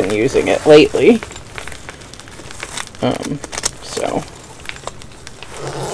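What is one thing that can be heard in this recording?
Hands rustle paper packets and fabric in a bag.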